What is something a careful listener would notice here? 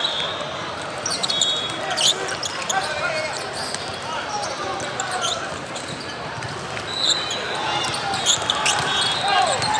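A volleyball is struck with sharp slaps during play.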